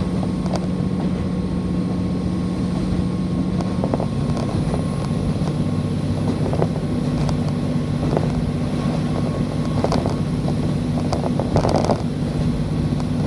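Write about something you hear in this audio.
A train rumbles steadily along.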